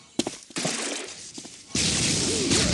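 A laser gun fires with an electric zapping hum.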